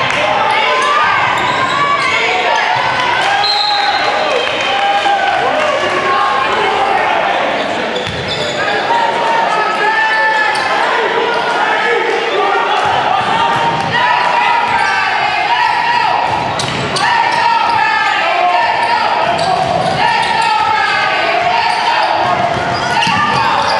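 A crowd chatters and shouts in a large echoing gym.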